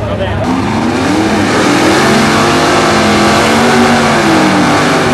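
A car engine revs up and down hard.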